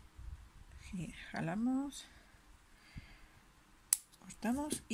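Scissors snip through yarn.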